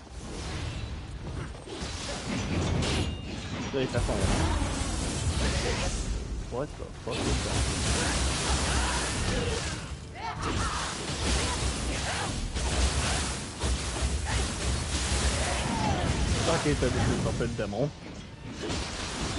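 Swords clash and slash with sharp metallic hits.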